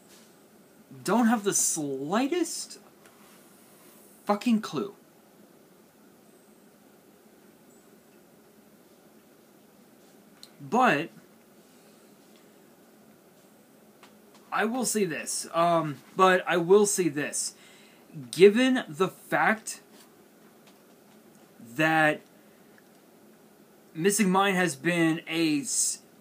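A young man speaks calmly and close up, in short bursts with pauses.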